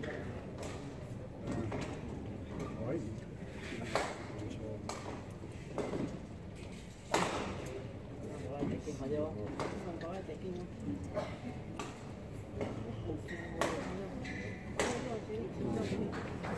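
A shuttlecock is struck sharply back and forth with rackets.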